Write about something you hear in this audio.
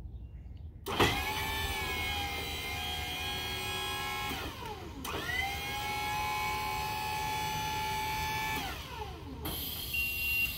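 An electric lift motor whines steadily.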